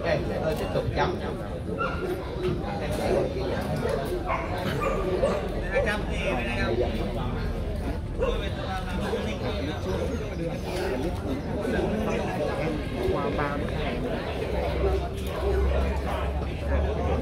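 A crowd of men and women chatter steadily in the background.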